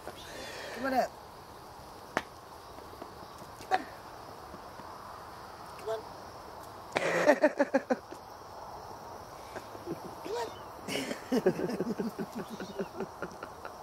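A woman talks and laughs close by, outdoors.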